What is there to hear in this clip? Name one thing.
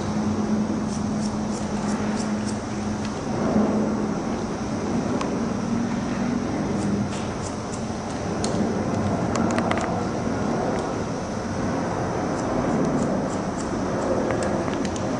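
Scissors snip through hair in quick, crisp clicks.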